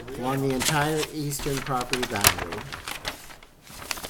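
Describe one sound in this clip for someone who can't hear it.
Paper rustles close to a microphone.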